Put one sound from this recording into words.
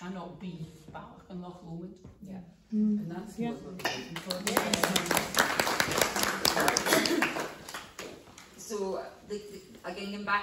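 A woman speaks calmly in a room.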